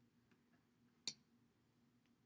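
A plastic cap clicks off a tube.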